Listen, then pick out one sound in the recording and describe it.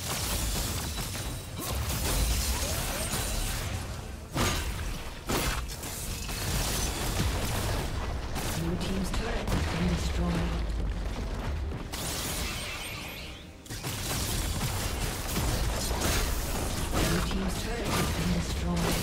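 Game spells and weapon hits clash rapidly in a battle.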